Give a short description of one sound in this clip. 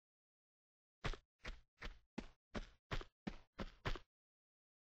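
Footsteps run quickly across a hard stone floor.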